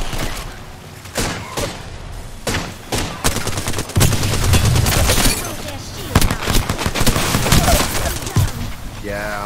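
Fire roars and crackles from an explosion.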